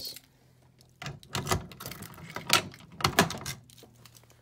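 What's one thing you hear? Keys jingle and clink.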